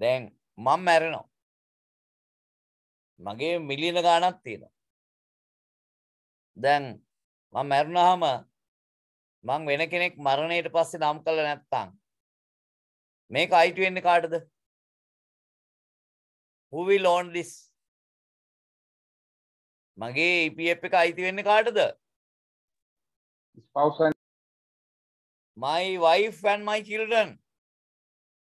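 A man speaks calmly in short phrases through a microphone, with pauses between them.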